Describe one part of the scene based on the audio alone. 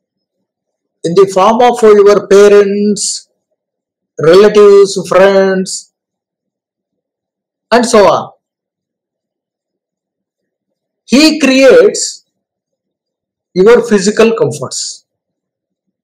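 An elderly man speaks calmly in short phrases over an online call.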